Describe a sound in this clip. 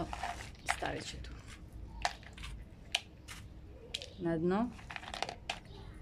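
Small hard pieces clatter into a pot.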